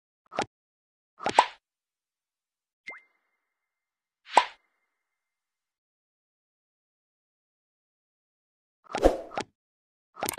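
Short game interface sounds chime and whoosh as menus open.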